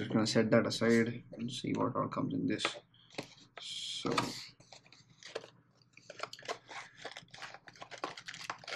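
Hands handle and open a small box, with soft scrapes and taps.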